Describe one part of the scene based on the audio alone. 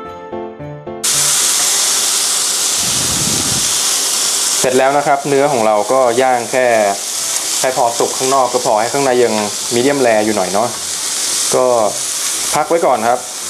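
Meat sizzles loudly on a hot grill pan.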